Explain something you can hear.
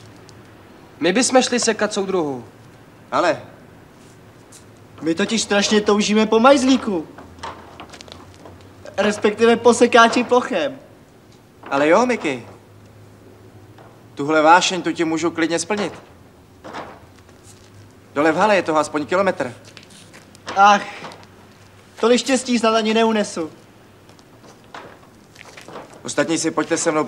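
Young men talk calmly in short exchanges, close by.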